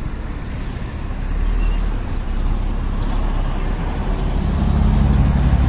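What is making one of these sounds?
Traffic rumbles past on a busy street.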